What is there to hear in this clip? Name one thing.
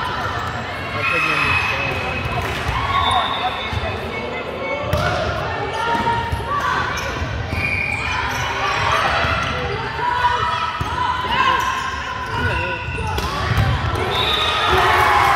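Young women call out to each other across a large echoing hall.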